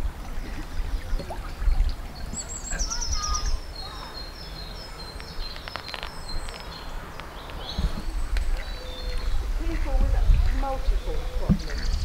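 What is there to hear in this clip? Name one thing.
A stream of water gently flows and ripples.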